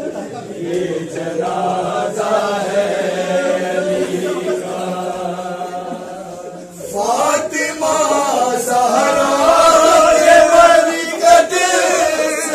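A crowd of men chants a lament loudly and in unison.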